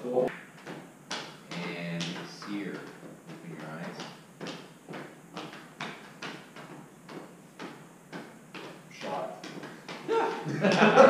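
A group of men clap their hands in a steady rhythm.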